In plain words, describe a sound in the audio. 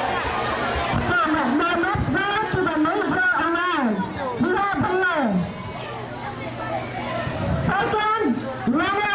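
A woman speaks with animation through a microphone and loudspeaker.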